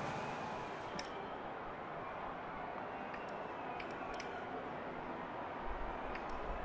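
Short menu clicks sound as options are selected.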